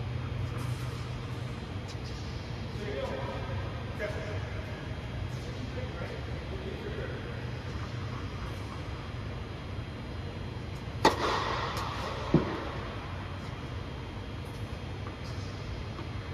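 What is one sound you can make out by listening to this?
Tennis balls are struck with rackets, with sharp pops echoing in a large hall.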